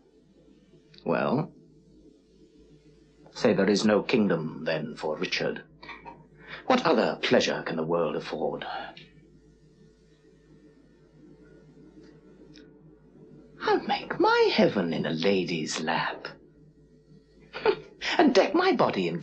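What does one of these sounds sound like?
A man speaks slowly and with feeling, close by, with long pauses.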